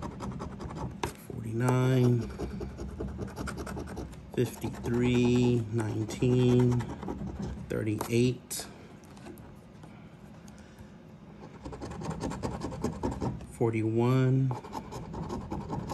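A coin scratches rapidly across a paper card.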